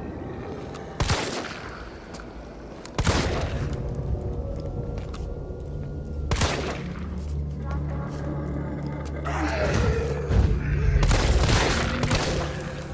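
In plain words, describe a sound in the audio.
A pistol fires loud, sharp shots.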